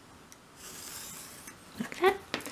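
A pencil scratches lightly across card.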